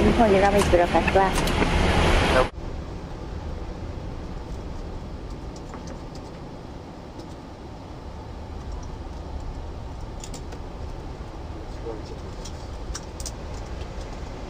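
A steady low hum of aircraft systems fills the cockpit.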